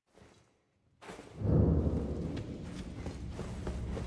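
Footsteps echo in a stone tunnel.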